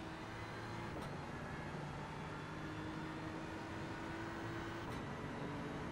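A gearbox shifts up with a sharp click.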